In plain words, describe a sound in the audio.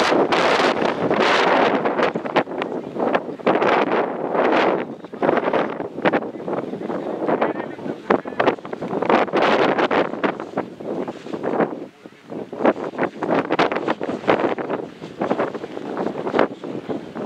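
Wind gusts loudly across an open field outdoors.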